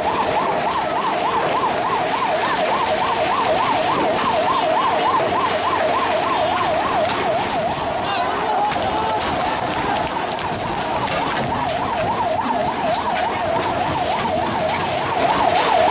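A large crowd shouts and clamours outdoors.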